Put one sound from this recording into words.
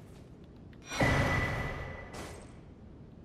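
A soft chime rings as an item is picked up.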